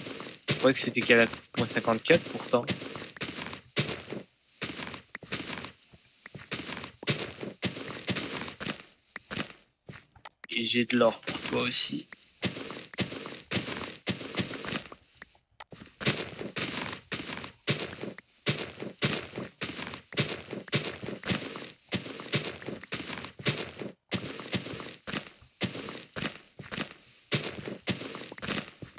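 A shovel digs into dirt with quick, repeated crunching thuds.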